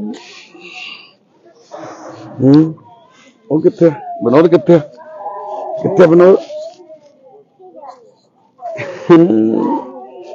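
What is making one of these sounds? A baby babbles and coos.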